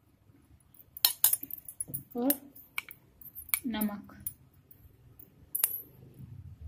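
A metal spoon clinks against a ceramic bowl.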